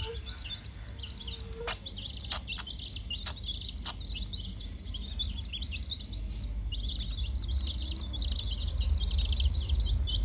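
Many chicks peep shrilly and constantly, close by.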